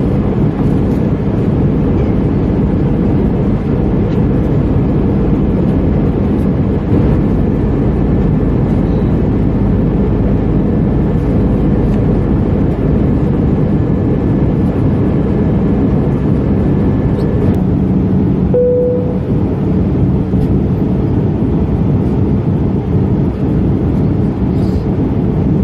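Turbofan engines roar in a low, steady rush inside a jet airliner cabin in flight.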